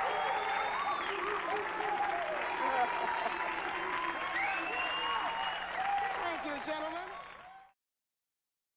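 A woman laughs and talks excitedly close by.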